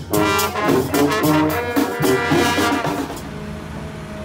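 A brass band plays loudly with trumpets and a drum.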